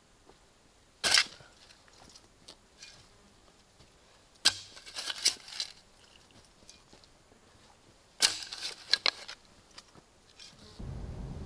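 A shovel scrapes and scoops soil.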